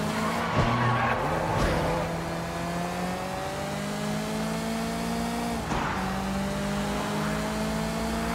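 Tyres screech on wet pavement.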